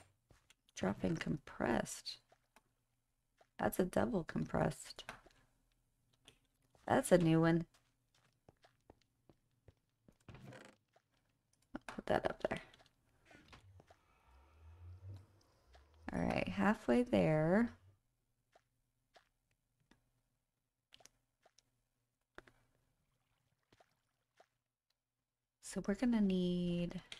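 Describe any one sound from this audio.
A young woman talks casually into a close microphone, in short bursts with pauses.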